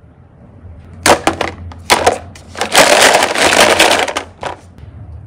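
Plastic toy cases clatter together in a basket.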